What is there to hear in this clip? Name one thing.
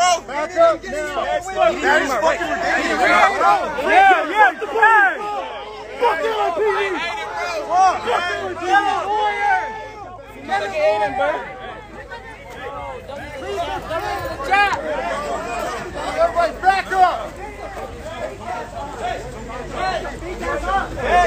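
A crowd of men talk and shout over one another close by, outdoors.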